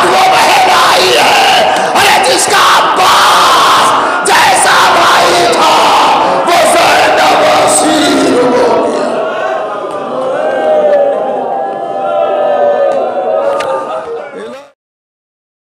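A man speaks with passion through a microphone in an echoing hall.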